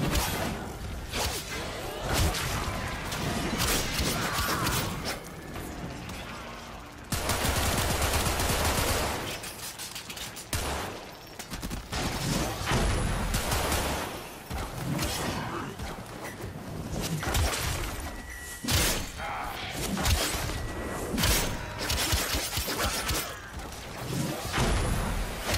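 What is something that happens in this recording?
Gunfire and energy blasts crackle and boom in a video game battle.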